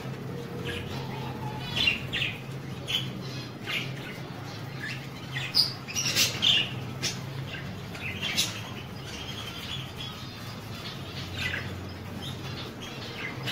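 Budgerigars chirp and chatter.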